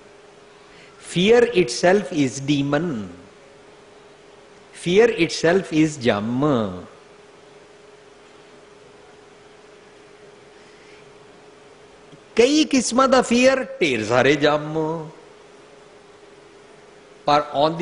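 An elderly man speaks calmly and expressively into a microphone, pausing between phrases.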